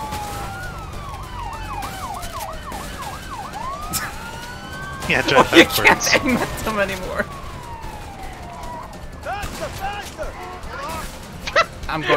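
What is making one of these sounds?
A police siren wails up and down.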